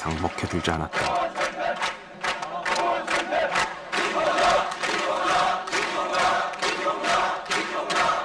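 A crowd claps hands rhythmically.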